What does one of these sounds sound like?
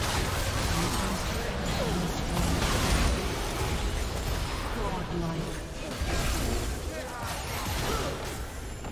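Magic spells whoosh and crackle in a busy battle.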